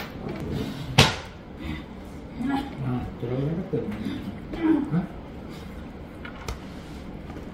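Cutlery clinks on a plate.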